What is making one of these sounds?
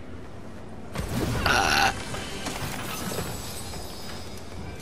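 A treasure chest creaks open with a bright chime.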